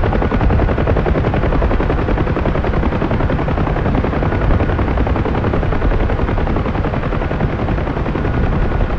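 A helicopter engine and rotor roar steadily and loudly, with a rapid chopping beat.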